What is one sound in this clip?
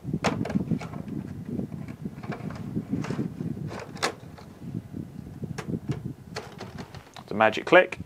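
Plastic panels click and rattle as they are handled.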